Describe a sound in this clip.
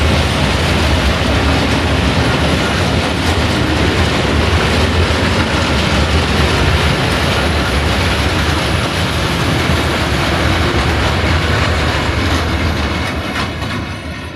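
A long freight train rumbles past close by, its wheels clattering on the rails.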